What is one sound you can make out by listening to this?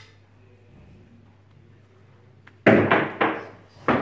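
Billiard balls click together sharply.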